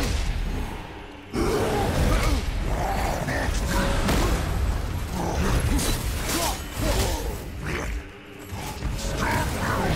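Heavy blows thud and crash.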